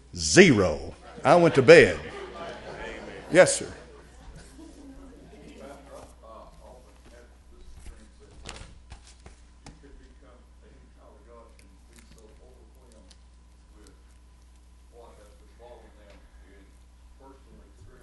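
An elderly man preaches through a microphone, loudly at first and then more quietly.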